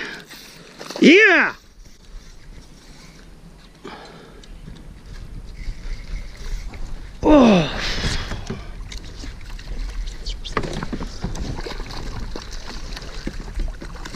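A hooked fish thrashes and splashes at the water's surface.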